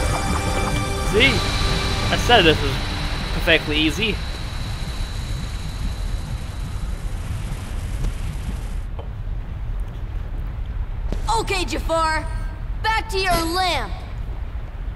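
A young man talks close to a microphone.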